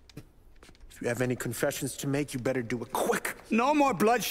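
A young man speaks angrily and threateningly up close.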